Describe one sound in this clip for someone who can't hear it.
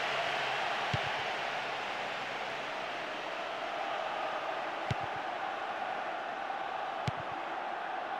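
A football is kicked with short dull thuds.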